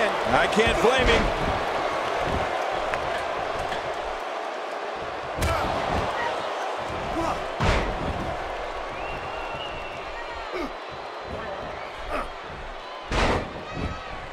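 Wrestlers' bodies thud heavily onto the mat.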